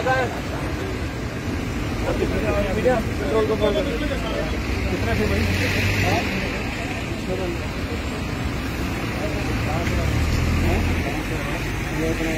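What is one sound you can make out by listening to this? Several men talk and shout over each other nearby, outdoors.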